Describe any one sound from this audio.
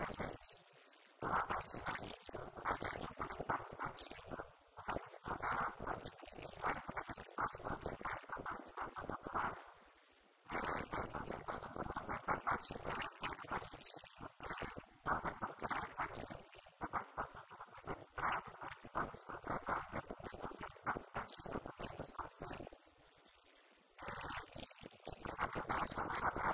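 A woman talks with animation into a microphone, heard through a loudspeaker.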